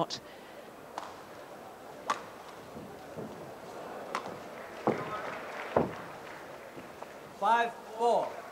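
A shuttlecock is struck sharply back and forth with rackets in a large echoing hall.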